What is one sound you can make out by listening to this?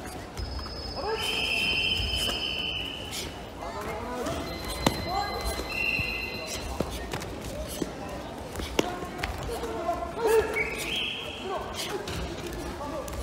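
A crowd of spectators shouts and cheers loudly.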